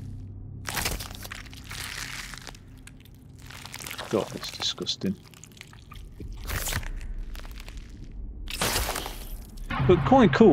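A heavy blow lands with a wet, crunching thud, again and again.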